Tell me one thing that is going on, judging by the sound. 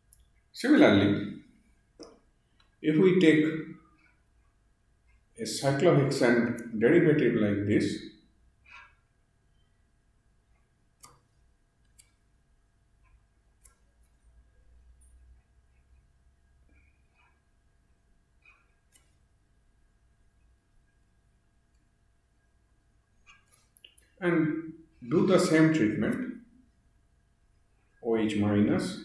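A man speaks calmly into a close microphone, in short phrases with long pauses.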